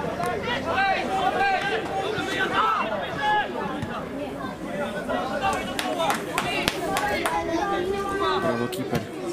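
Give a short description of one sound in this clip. Players shout and call to each other across an open field.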